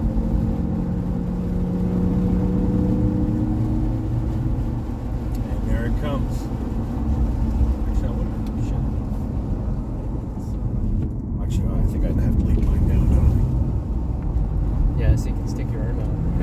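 A sports car engine drones, heard from inside the cabin.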